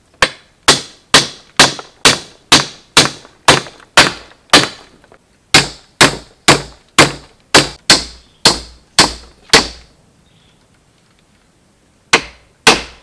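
A hatchet strikes bamboo poles in sharp, evenly spaced blows.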